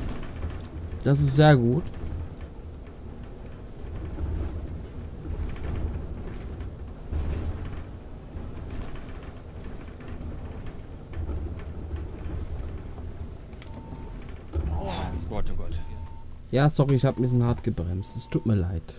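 A bus engine hums low and steady as the bus drives along.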